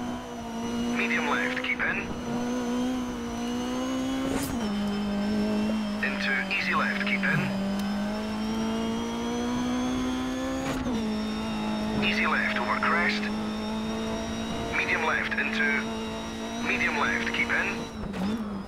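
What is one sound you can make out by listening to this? Tyres squeal in short bursts on the bends.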